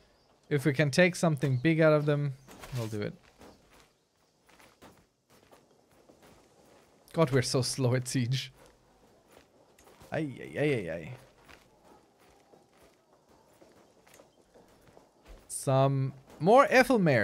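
A man talks with animation, close to a microphone, in short bursts.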